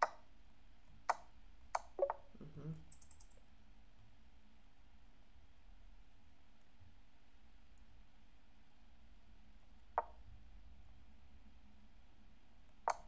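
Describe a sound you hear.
Short clicks sound as chess moves are played.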